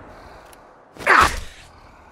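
A shotgun is pumped with a sharp metallic clack.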